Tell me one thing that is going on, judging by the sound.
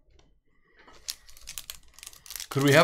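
A foil wrapper crinkles as hands tear it open.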